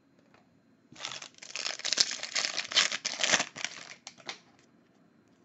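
Foil wrapping crinkles and tears as a pack is ripped open.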